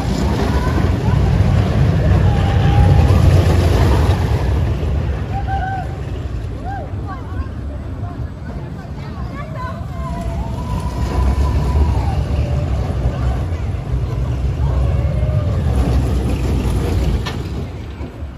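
A roller coaster rumbles and clatters loudly along its track.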